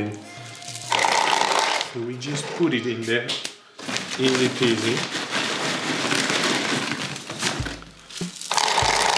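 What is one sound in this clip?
Potting soil crumbles and patters into a plastic pot.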